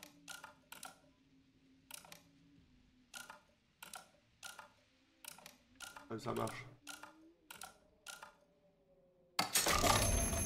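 A mantel clock clicks rapidly as its hands are turned.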